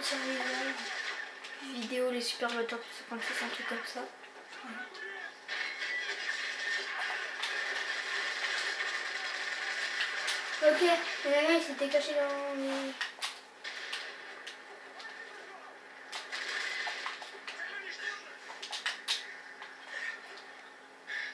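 Video game gunfire crackles in rapid bursts through a television speaker.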